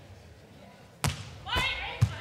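A hand slaps a volleyball hard on a serve.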